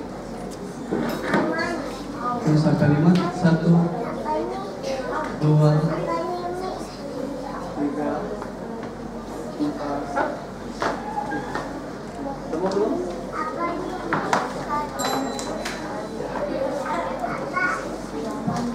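A young boy speaks calmly into a microphone, heard through a loudspeaker.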